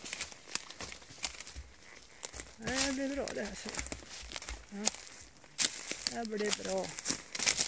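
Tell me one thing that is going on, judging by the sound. Dry twigs snap and crackle underfoot.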